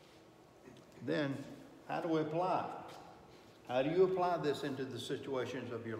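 An older man speaks calmly and clearly, close by.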